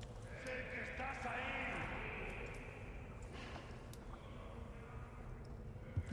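Footsteps crunch slowly on a stone floor.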